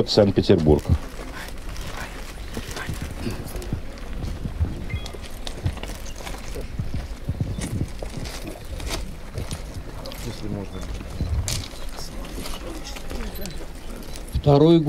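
A second elderly man speaks calmly into a microphone over a loudspeaker, outdoors.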